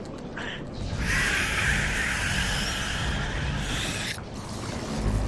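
A loud crackling energy blast roars in a video game.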